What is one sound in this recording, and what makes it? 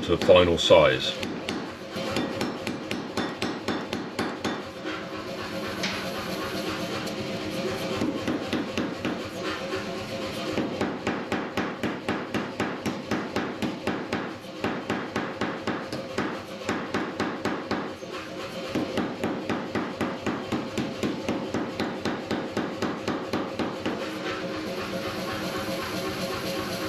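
A power hammer runs with a fast, steady thumping rhythm.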